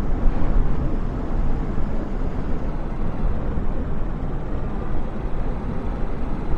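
A jet engine idles with a steady low roar.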